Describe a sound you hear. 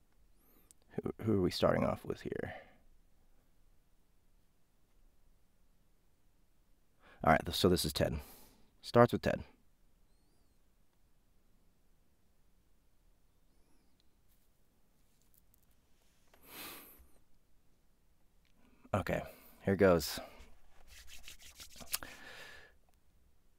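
A young man speaks casually into a close microphone, in short bursts with pauses.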